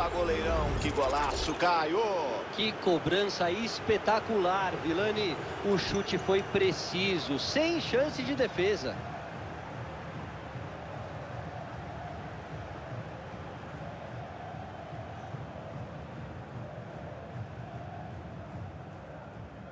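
A stadium crowd roars and murmurs steadily.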